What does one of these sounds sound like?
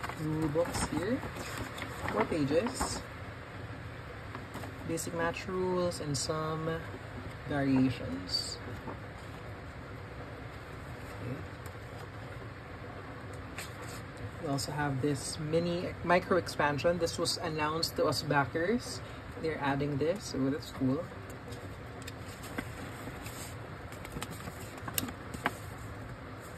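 Paper rustles and crinkles as a booklet is handled and its pages are turned.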